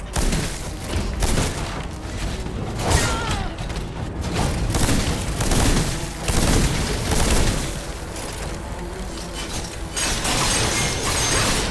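A magical blast whooshes and crackles.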